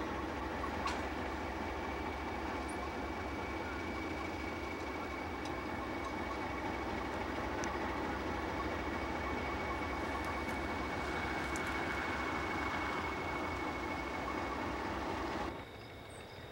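An Alco diesel locomotive rumbles close by.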